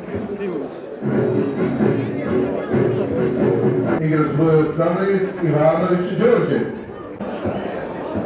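A crowd of fans chants loudly together outdoors.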